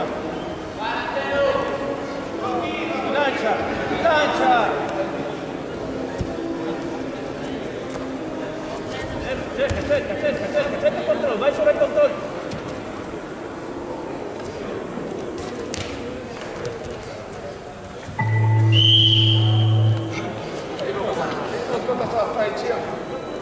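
Men shout from the sidelines in a large echoing hall.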